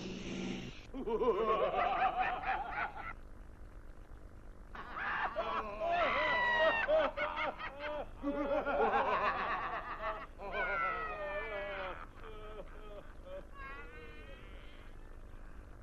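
A man's voice shouts and snarls menacingly, close up.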